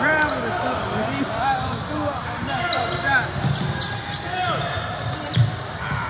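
A man calls out to players in a large echoing gym.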